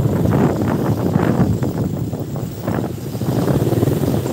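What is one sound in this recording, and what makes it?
A motorized tricycle engine putters nearby.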